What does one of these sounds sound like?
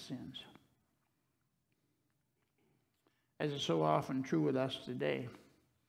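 An older man reads aloud calmly into a microphone.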